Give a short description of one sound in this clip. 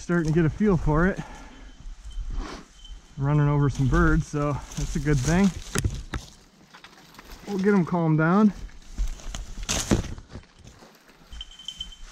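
Footsteps crunch through dry leaves.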